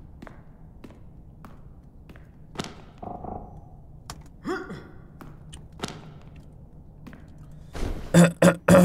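Footsteps knock on a wooden floor at a steady pace.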